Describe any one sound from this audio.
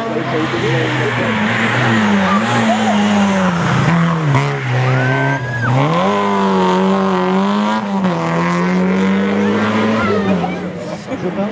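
A rally car engine revs hard and roars close by.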